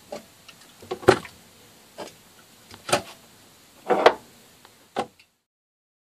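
Cans clink against each other.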